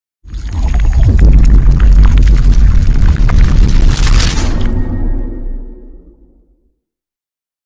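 Water bursts and splashes loudly, then fades away.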